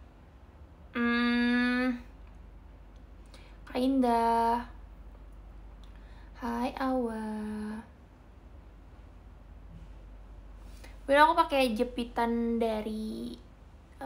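A young woman sings short sustained notes close to a microphone.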